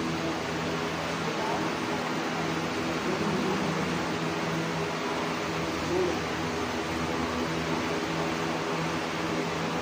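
A refrigerated display case hums steadily.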